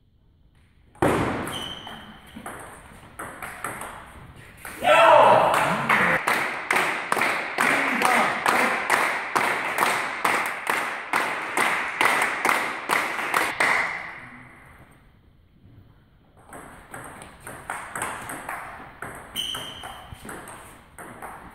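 A table tennis ball clicks back and forth between paddles and the table.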